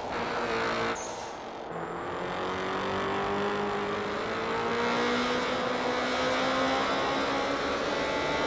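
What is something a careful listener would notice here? A car engine drops briefly as gears change, then climbs in pitch again.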